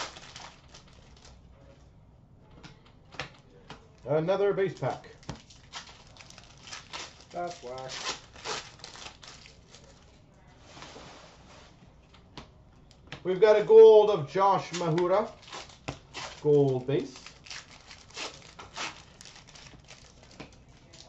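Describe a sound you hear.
Foil card pack wrappers crinkle and tear as they are opened.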